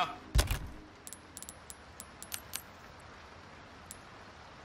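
Short electronic menu clicks sound one after another.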